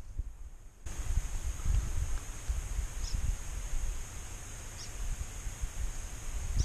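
Wind rumbles and buffets against the microphone outdoors.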